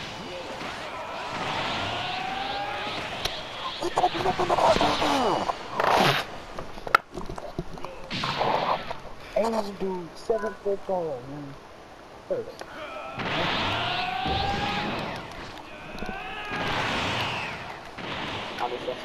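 Video game energy blasts whoosh and crackle.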